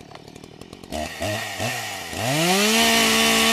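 A chainsaw engine revs loudly.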